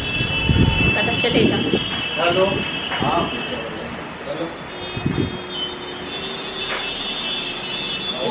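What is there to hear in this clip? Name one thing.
A man talks on a phone a short distance away.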